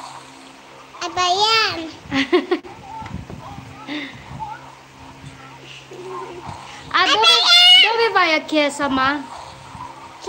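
A young girl squeals and laughs close by.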